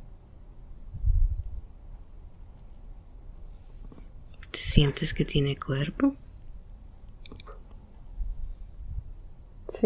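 A young woman snores softly in her sleep nearby.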